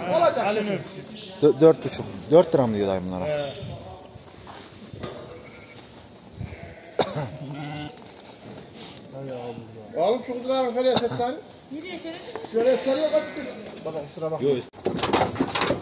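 Sheep bleat loudly close by.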